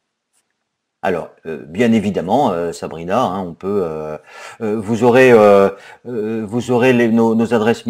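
A man speaks calmly through a webcam microphone, as on an online call.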